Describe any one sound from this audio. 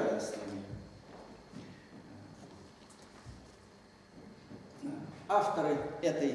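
A middle-aged man lectures calmly in an echoing hall.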